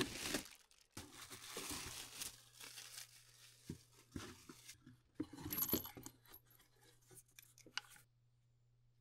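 Metal engine parts clink and knock as they are handled.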